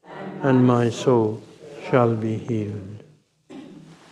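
An elderly man chants loudly through a microphone in an echoing room.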